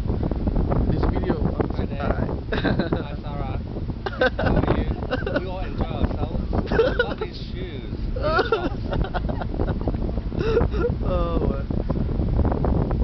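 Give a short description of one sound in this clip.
A middle-aged man talks and laughs nearby.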